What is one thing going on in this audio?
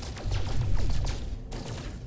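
A laser gun fires in quick zaps.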